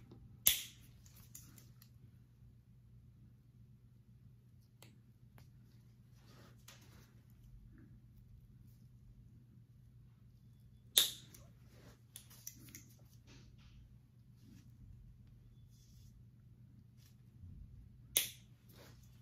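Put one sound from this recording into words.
Nail clippers snip through thick toenails with sharp clicks.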